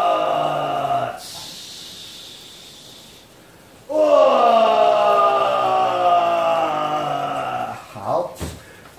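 A woman cries out in long, drawn-out wails close by.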